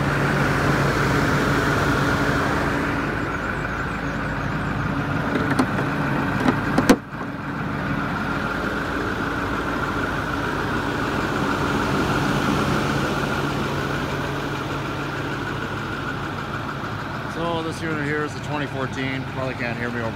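A bus engine idles with a steady low hum.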